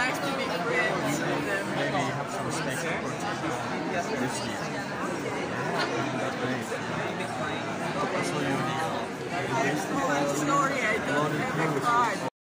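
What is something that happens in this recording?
A middle-aged man talks up close.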